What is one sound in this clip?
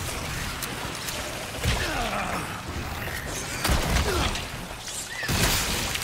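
A monster shrieks and gurgles.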